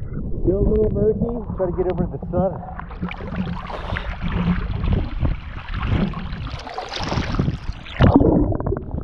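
Water splashes and laps close by at the surface.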